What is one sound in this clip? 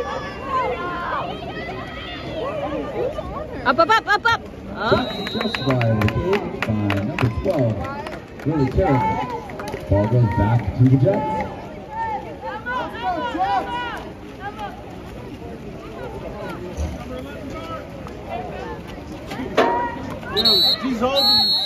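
Swimmers splash in water.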